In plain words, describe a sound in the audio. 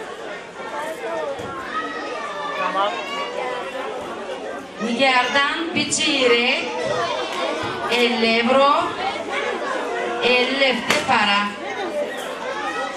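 A middle-aged woman speaks loudly and with animation through a microphone over loudspeakers in a large echoing hall.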